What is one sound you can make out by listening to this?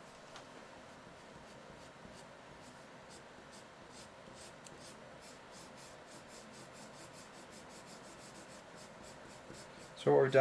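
A pencil scratches and rubs quickly across paper, close by.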